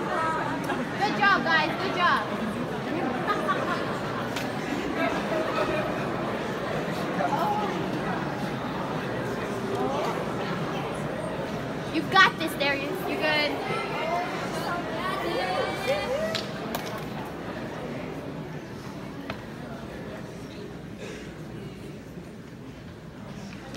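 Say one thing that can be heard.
A violin plays a melody in a large echoing hall.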